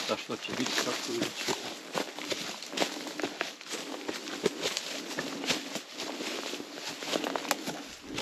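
Boots crunch and scuff on rocky ground through dry grass.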